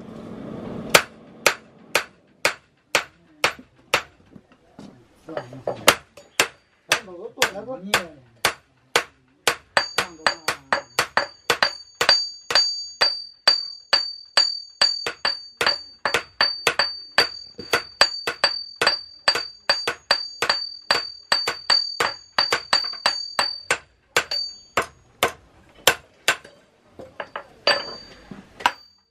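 Hammers strike hot metal on an anvil with sharp, ringing clangs.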